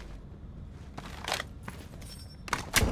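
A rifle magazine clicks out and snaps back in during a reload.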